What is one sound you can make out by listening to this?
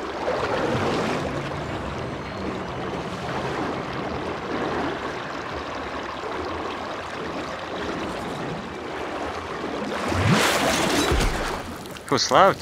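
A rushing whoosh of fast movement roars steadily, then swells and stops.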